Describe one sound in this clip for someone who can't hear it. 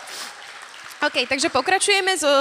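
A young woman sings through loudspeakers in a large hall.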